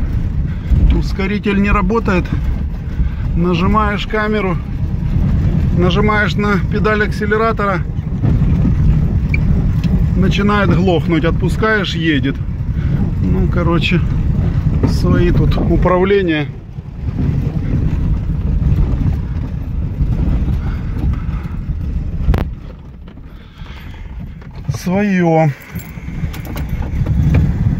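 A car engine rumbles steadily.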